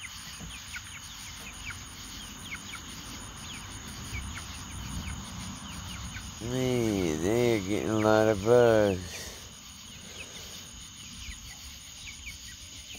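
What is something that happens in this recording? Chicks peep softly and steadily.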